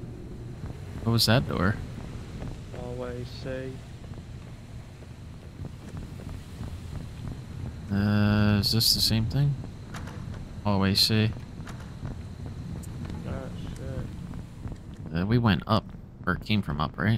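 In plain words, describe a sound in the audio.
A young man talks into a close microphone, in short bursts.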